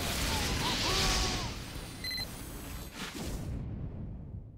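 Guns fire in rapid bursts close by.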